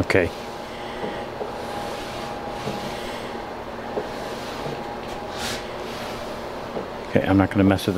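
A wooden drawer slides open and shut.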